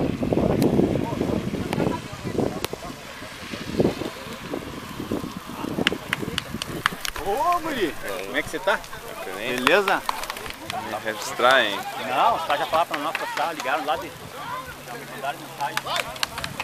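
A fire crackles on the street.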